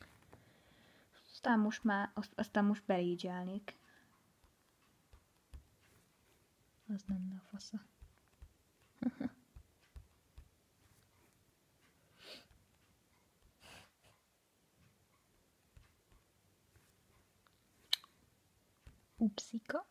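A finger taps on a touchscreen.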